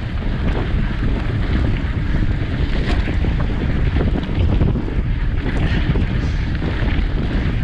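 Bicycle tyres rumble and crunch over a gravel track.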